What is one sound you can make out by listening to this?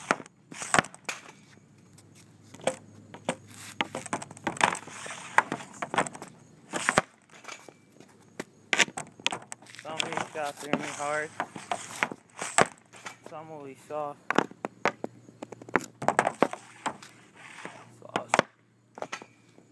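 A hockey stick slaps a ball sharply, again and again.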